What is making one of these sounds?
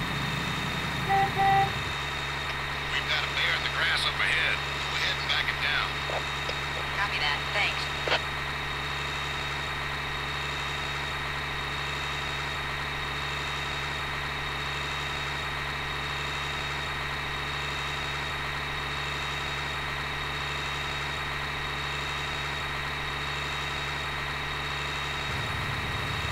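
A truck engine hums steadily.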